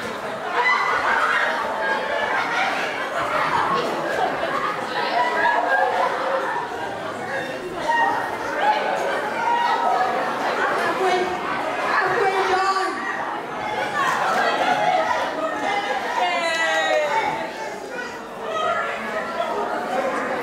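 Young girls laugh and squeal.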